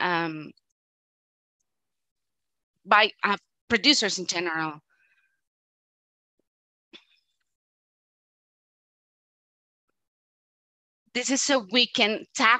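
A man speaks calmly through a microphone in an online call, with pauses.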